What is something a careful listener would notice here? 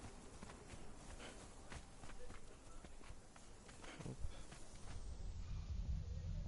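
Footsteps run over sand and dry grass.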